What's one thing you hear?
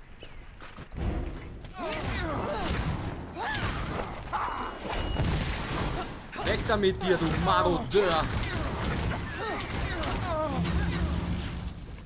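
Magic blasts crackle and boom in quick bursts.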